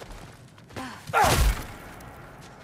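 Flames burst with a sudden whoosh.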